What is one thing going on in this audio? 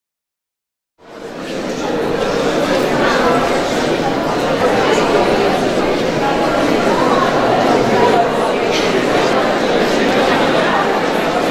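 A large audience murmurs and chatters in an echoing hall.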